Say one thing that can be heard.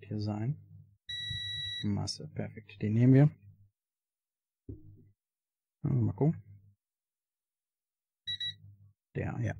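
A multimeter beeps with a steady high tone.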